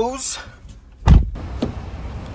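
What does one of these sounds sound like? A car door shuts with a heavy thud.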